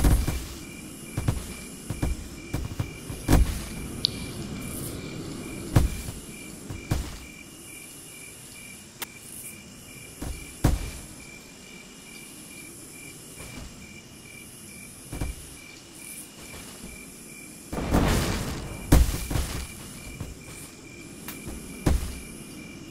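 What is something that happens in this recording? Blocks snap into place with short clicks, now and then.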